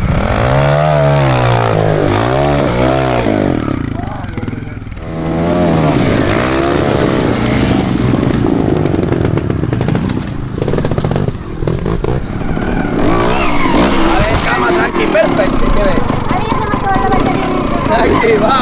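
A trials motorcycle engine revs sharply in short bursts.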